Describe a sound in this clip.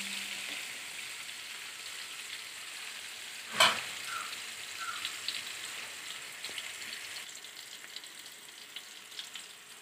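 Onions sizzle and crackle in hot oil.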